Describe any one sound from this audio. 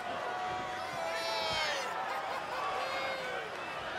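A large crowd cheers and whistles in a big arena.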